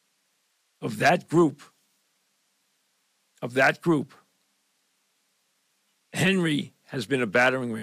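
An elderly man speaks close to a microphone in short bursts with pauses.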